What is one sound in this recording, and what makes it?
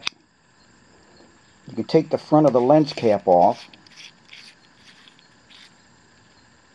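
A small metal torch head is unscrewed with faint scraping clicks.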